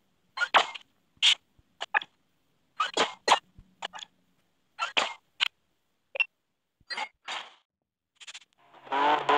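Short clicks and whooshes sound as menus change.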